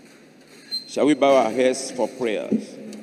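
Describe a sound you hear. A man speaks loudly through loudspeakers in a large echoing hall.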